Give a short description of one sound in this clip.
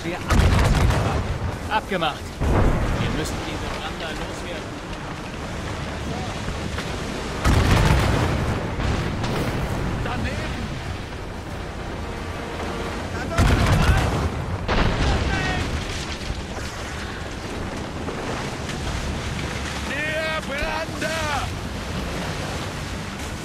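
Wind and sea roar steadily outdoors.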